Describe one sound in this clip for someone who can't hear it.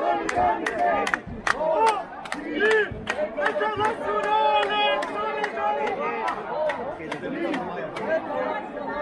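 A crowd chants loudly outdoors in rhythm.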